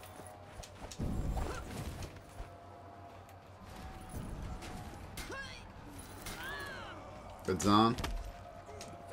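Heavy blades strike and clang against a shield.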